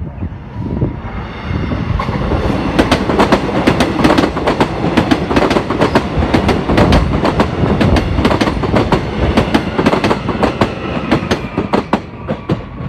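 An electric multiple-unit passenger train passes close by.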